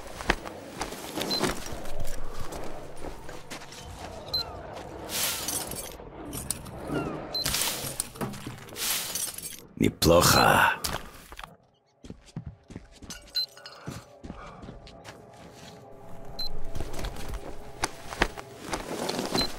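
Footsteps crunch on gravel and rubble.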